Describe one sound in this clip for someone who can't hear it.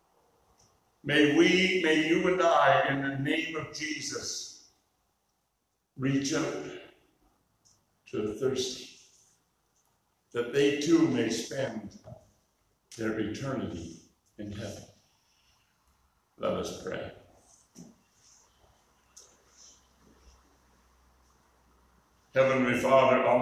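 An elderly man preaches through a microphone in bursts, with pauses between phrases, in a room with some echo.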